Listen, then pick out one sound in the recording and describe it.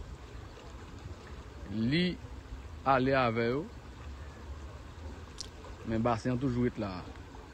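Muddy floodwater rushes and churns.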